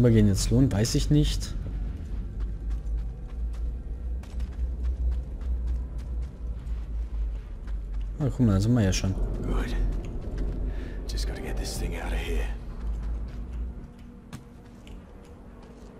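Footsteps crunch on gritty ground.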